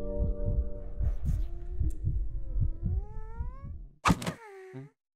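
A young girl's cartoon voice speaks with alarm.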